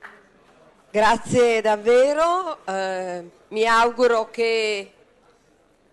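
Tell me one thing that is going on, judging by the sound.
A woman speaks warmly through a microphone in an echoing hall.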